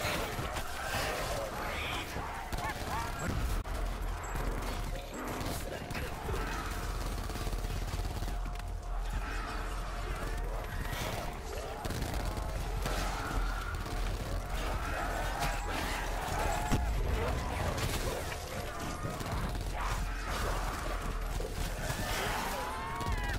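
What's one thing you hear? Zombies groan and snarl.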